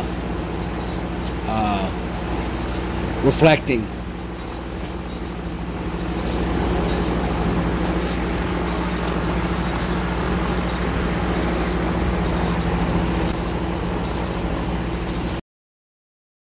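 A laser engraving machine hums steadily with a low drone.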